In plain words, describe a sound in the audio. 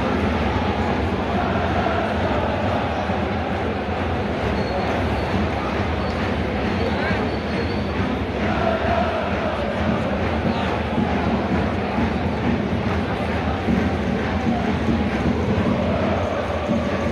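A large stadium crowd chants and sings loudly and steadily.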